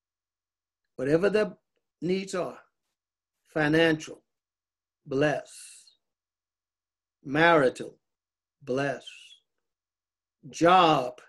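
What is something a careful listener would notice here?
An elderly man speaks slowly in short phrases with pauses between them.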